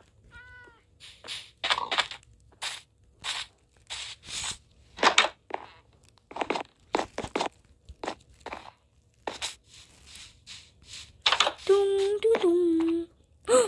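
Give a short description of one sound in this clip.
Footsteps thud steadily on sand and grass.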